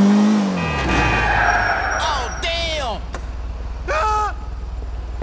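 Car tyres screech as the car skids.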